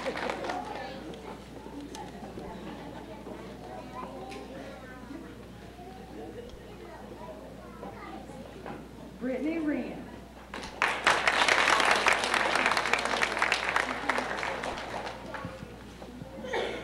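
An audience chatters quietly.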